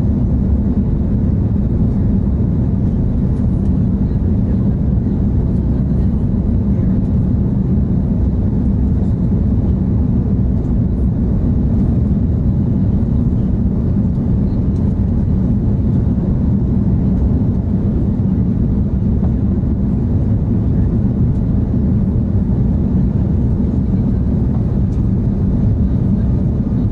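Jet engines roar steadily from inside an airliner cabin.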